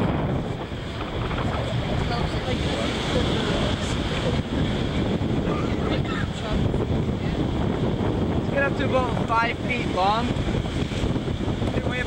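Surf rushes and crashes against rocks.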